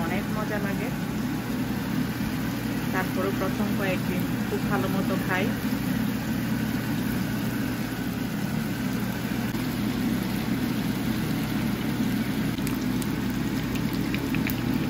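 Hot oil sizzles and crackles steadily in a frying pan.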